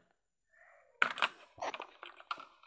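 A plastic toy train clicks and rattles as it is handled.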